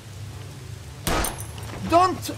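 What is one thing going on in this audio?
A gunshot cracks sharply.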